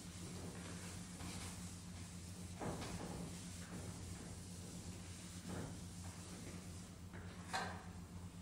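A cloth rubs against a chalkboard.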